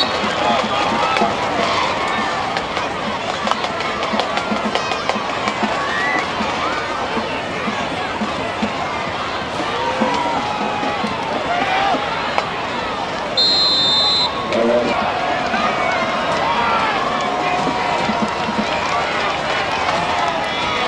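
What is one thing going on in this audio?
Young men shout and call out from a distance.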